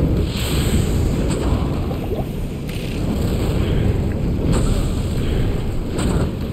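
A fire roars steadily.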